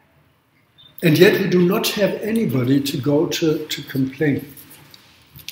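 An elderly man speaks calmly and clearly, close by.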